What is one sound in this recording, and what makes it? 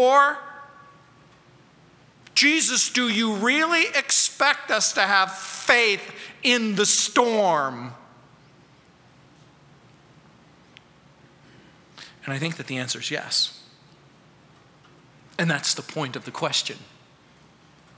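An older man speaks with animation into a microphone.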